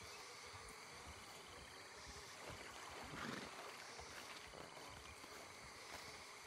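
A horse's hooves thud softly on soft ground.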